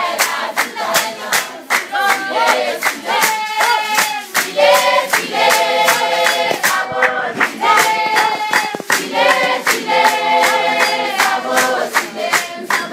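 A group of young women and girls sing loudly together.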